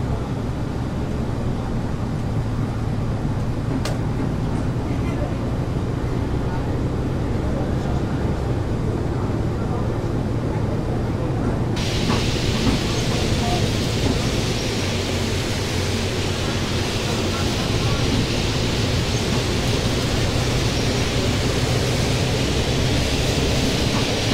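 Tyres roll on the road with a steady rush.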